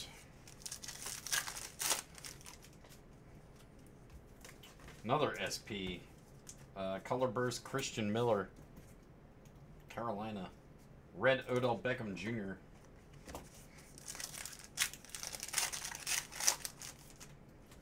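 Foil wrappers crinkle and tear close by.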